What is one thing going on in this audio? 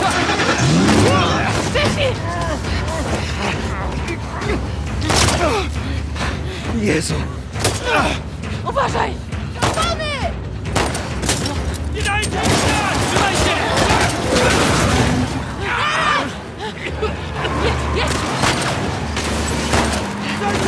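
Pistol shots ring out in sharp bursts.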